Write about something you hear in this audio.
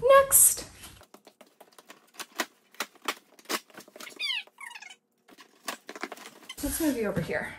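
A blade slits packing tape on a cardboard box with quick scratchy clicks.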